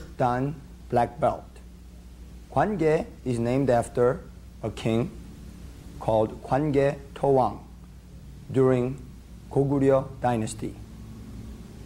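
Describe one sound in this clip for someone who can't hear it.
A young man speaks calmly and clearly close to a microphone.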